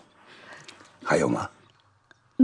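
A young woman asks something brightly, close by.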